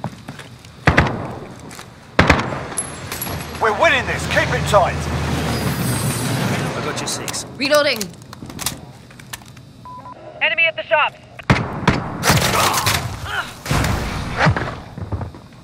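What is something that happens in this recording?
Gunshots crack in short sharp bursts.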